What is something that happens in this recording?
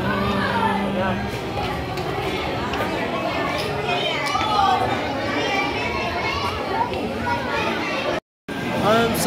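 A crowd murmurs and chatters in a busy indoor space.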